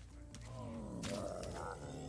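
A spear strikes a bear with a thud.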